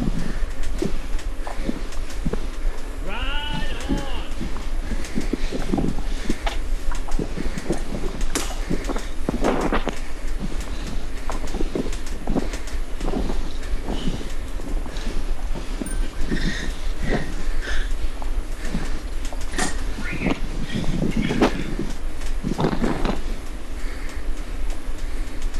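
An indoor bike trainer hums steadily.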